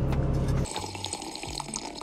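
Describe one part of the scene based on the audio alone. A young woman sips a drink through a straw.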